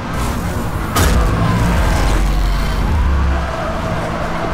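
A car engine surges with a deep roar as it boosts.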